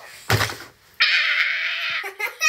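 A young girl screams loudly close by.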